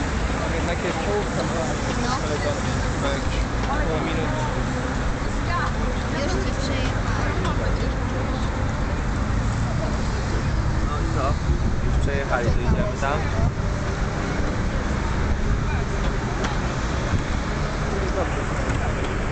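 A crowd of spectators cheers and chatters outdoors.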